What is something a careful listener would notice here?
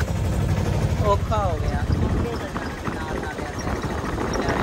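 Young men talk and call out close by.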